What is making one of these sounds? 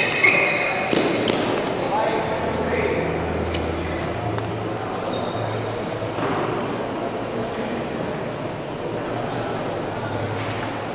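Spectators murmur quietly in a large echoing hall.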